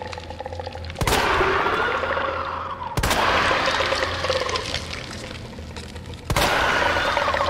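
A handgun fires several loud shots that ring out.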